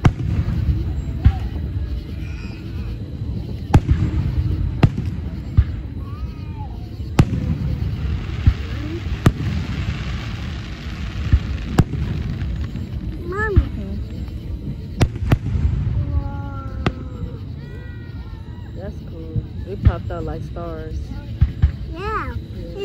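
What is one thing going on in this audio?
Aerial firework shells burst outdoors with sharp booms.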